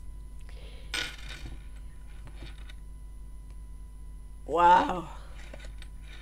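Cards are shuffled with soft rustling and tapping.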